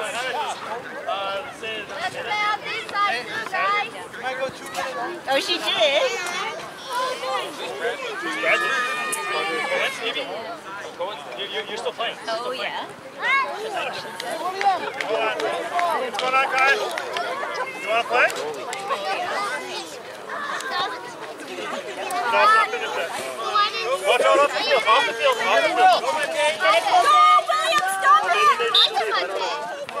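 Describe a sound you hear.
Young children shout and chatter outdoors.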